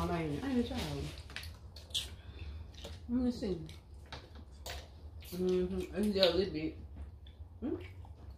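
Food rustles and crunches as people eat.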